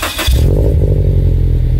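A car engine starts with a sudden roar close by.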